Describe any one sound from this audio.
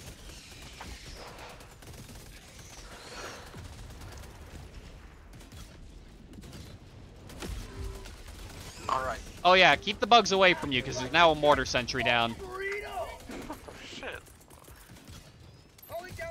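Explosions boom in a game.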